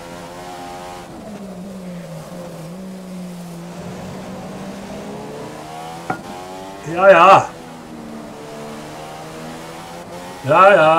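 A racing car engine drones and shifts in pitch as the car speeds along.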